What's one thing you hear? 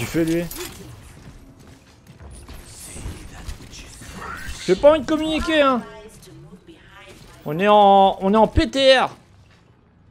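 A young man talks with animation into a close microphone, his voice rising and falling in a sing-song way.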